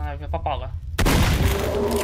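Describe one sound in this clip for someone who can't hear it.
A shotgun fires a loud, echoing blast.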